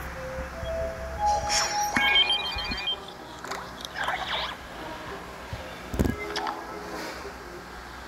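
Short electronic chimes and jingles play in quick succession.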